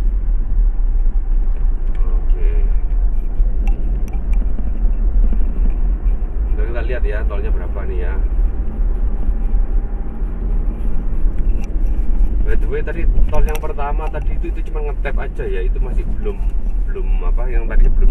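A car's engine and tyres rumble steadily on the road, heard from inside the car.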